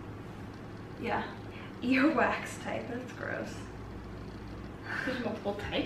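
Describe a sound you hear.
Another young woman laughs and talks nearby.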